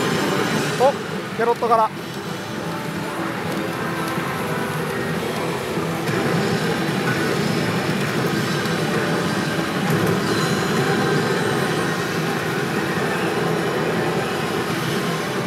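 Loud electronic music and jingles blare from a gaming machine.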